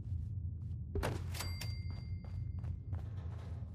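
A building chime rings as an item is placed.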